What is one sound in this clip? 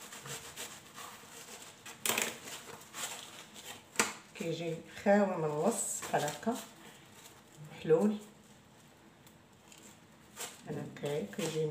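Bread crust rustles and crackles as hands tear and stack the pieces.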